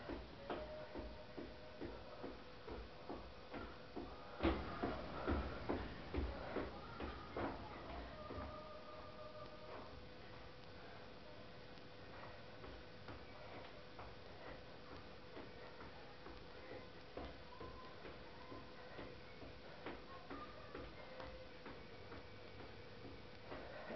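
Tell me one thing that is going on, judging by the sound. Feet stomp and shuffle rhythmically on a hard floor.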